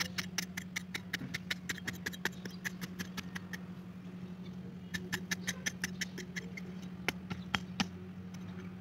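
A small hand hoe scrapes and chops into dry soil in quick strokes.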